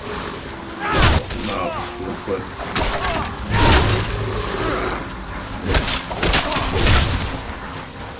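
Blades strike and clash in a melee fight.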